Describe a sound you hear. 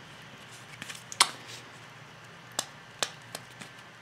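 Tape peels off a plastic case.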